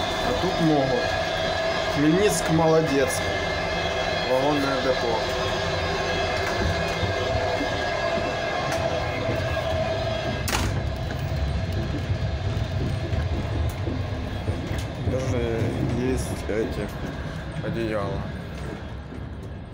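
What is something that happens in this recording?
A moving train carriage rumbles and rattles steadily.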